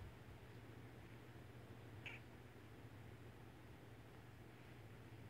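A hand rubs and strokes a cat's fur softly.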